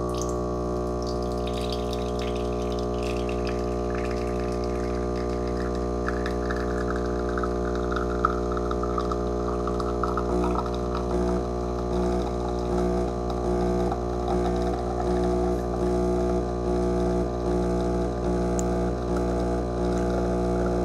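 An espresso machine pump hums and buzzes steadily.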